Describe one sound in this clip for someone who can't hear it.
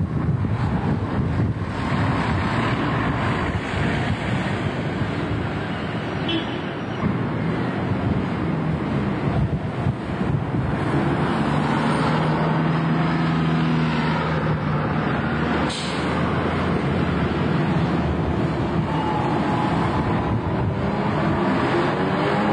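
Traffic hums along a street.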